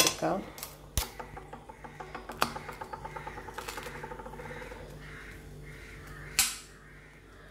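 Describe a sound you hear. A knife saws through crisp toasted bread with a dry crunching rasp.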